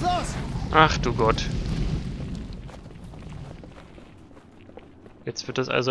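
Flames roar and crackle nearby.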